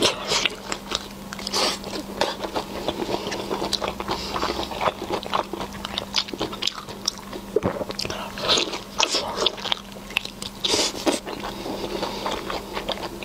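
A young woman chews and slurps food wetly, close to a microphone.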